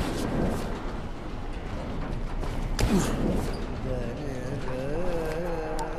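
Feet clatter and bang on a sheet-metal roof.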